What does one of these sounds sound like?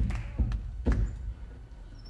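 Feet thud on a wooden stage floor.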